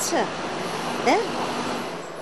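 A middle-aged woman speaks with animation close by.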